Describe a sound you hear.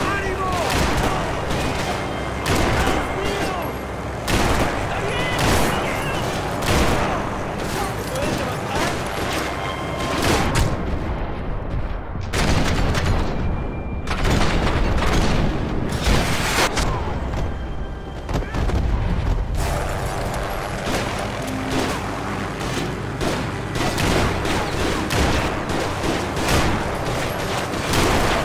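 Gunshots crack again and again.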